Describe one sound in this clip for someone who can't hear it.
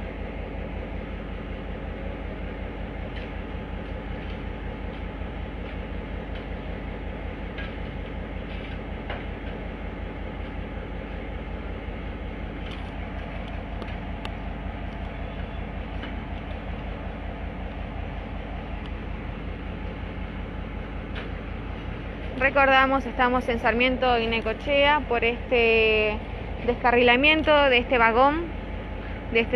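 A diesel locomotive engine idles with a low, steady rumble.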